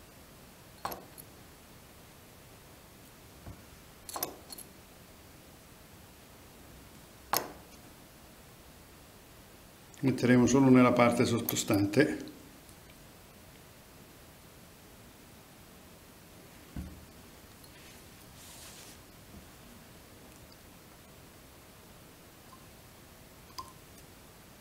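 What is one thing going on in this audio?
Small tools click and tap softly against a metal vise.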